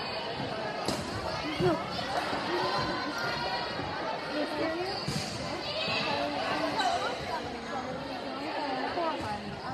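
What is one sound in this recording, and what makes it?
A crowd of spectators cheers and chatters in a large echoing gym.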